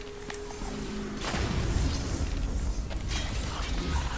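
Fiery blades whoosh and crackle through the air.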